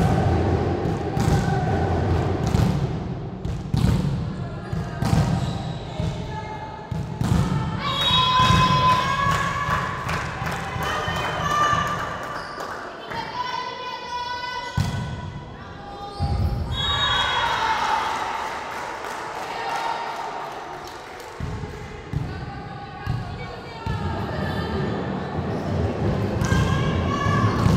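Young girls shout and call out to each other.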